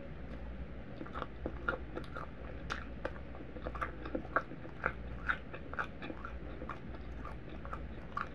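A woman chews soft food close to a microphone with wet smacking sounds.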